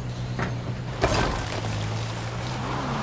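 A car crashes into thick brush with a rustling thud.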